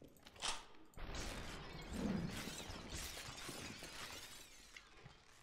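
Glass shatters and tinkles.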